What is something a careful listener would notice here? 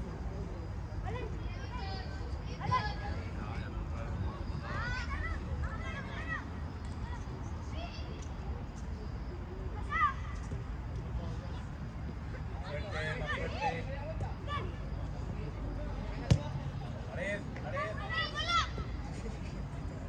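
Children shout and call out across an open outdoor pitch, heard from a distance.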